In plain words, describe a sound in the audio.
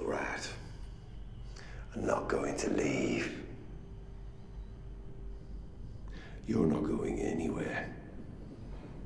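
An older man speaks in a low, menacing voice.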